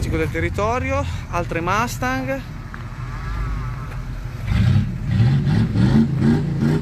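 A car engine rumbles deeply and grows louder as the car pulls slowly away.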